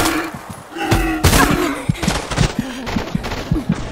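A wild boar squeals and grunts loudly.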